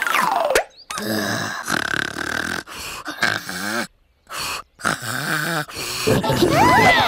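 A small creature babbles and squeaks in a high cartoonish voice.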